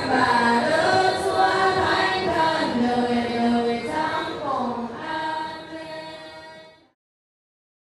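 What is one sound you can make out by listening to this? A crowd of young women sings together slowly.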